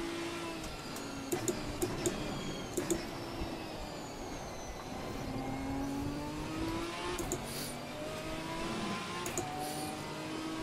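A racing car engine revs up and down as gears change.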